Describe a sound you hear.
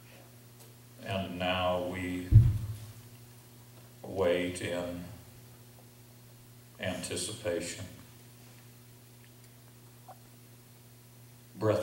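An elderly man reads aloud slowly and calmly into a microphone, with pauses between phrases.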